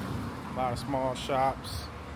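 A car drives slowly down the street.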